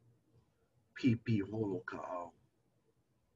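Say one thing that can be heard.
An elderly man speaks briefly over an online call.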